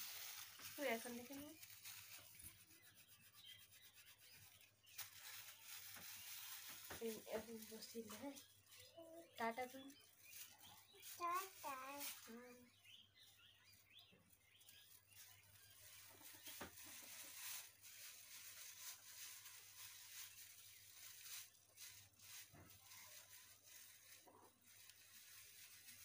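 A comb strokes through long hair.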